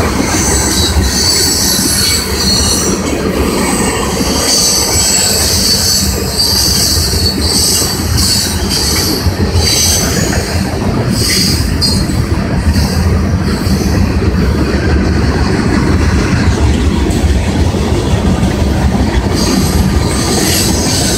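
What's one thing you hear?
A long freight train rumbles and clatters steadily past on the tracks.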